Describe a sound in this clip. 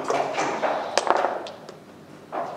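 Dice clatter onto a board.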